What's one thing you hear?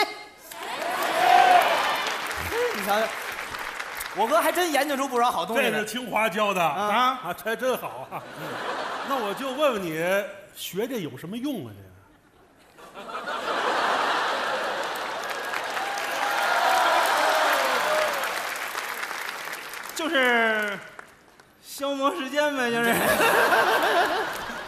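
An audience laughs and applauds loudly in a large hall.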